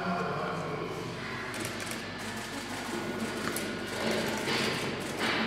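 Feet shuffle and scuff on a hard floor.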